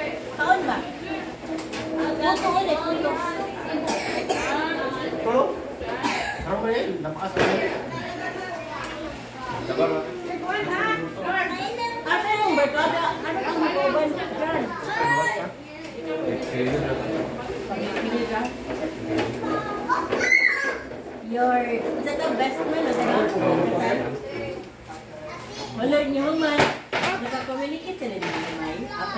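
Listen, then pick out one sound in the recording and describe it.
Serving spoons clink against metal trays and plates.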